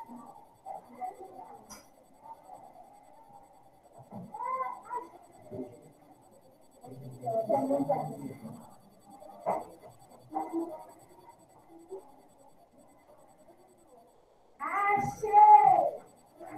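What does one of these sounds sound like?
A woman speaks calmly through a microphone, with pauses.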